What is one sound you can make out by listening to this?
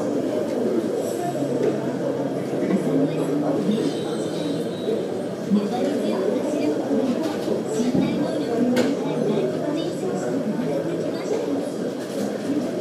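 A distant train hums faintly on the tracks.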